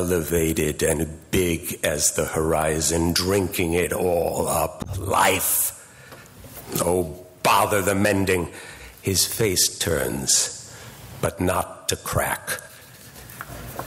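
An older man reads out calmly through a microphone.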